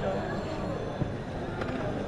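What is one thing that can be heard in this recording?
A metal spoon scrapes against a large metal pan.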